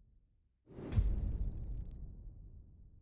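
An electronic points counter ticks rapidly as it tallies up.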